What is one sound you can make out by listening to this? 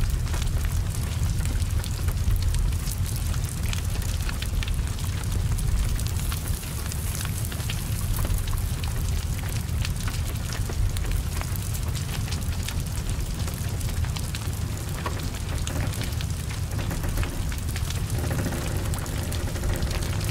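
Rain patters steadily on wet ground.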